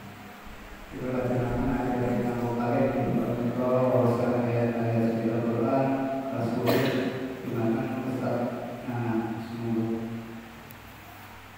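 A man chants into a microphone in an echoing hall.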